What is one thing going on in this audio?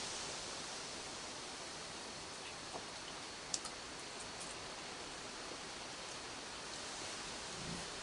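A raccoon chews and crunches food up close.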